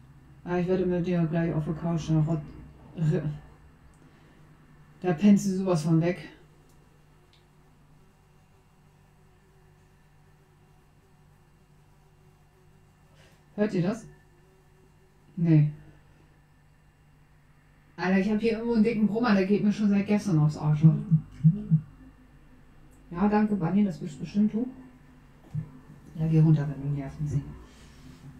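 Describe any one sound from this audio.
A young woman talks casually into a close microphone, in short bursts with pauses.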